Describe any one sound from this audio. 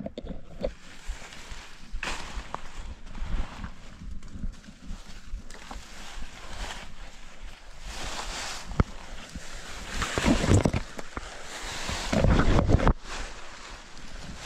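Branches scrape and snap against a rider's arms.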